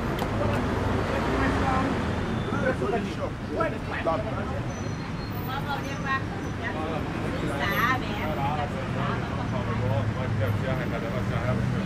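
Men's voices talk nearby on the street.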